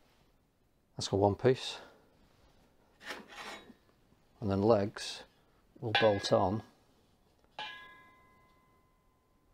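Steel bars knock and ring against each other.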